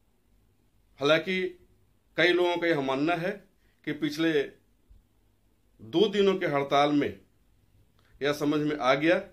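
A middle-aged man speaks calmly and closely into a microphone.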